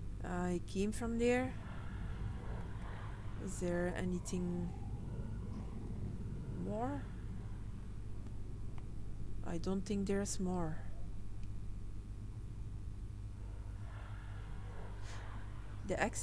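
A woman talks casually into a close microphone, in short bursts.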